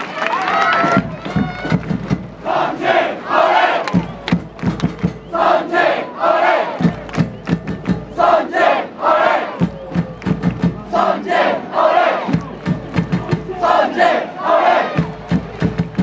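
Fans nearby clap their hands in rhythm.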